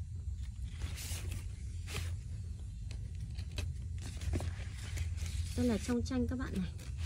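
Loose threads rustle as hands sort through them.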